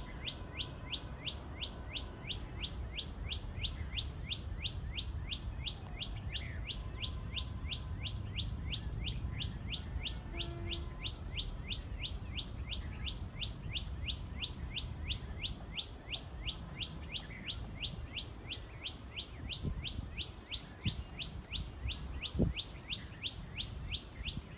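Wind rustles the leaves of trees outdoors.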